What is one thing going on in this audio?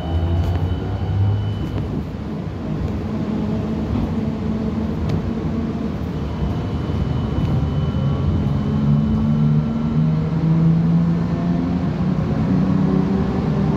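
A vehicle engine hums steadily from inside as the vehicle rolls along.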